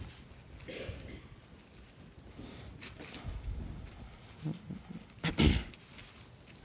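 Paper pages rustle as a man turns them.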